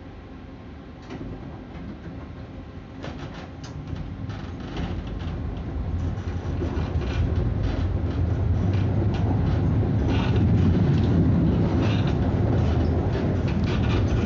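Tram wheels rattle and clatter on the rails.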